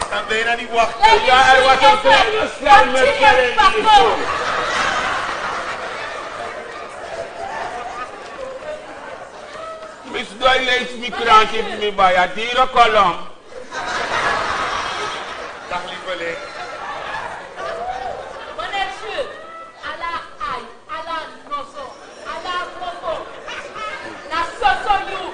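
A woman speaks loudly and with animation in an echoing hall.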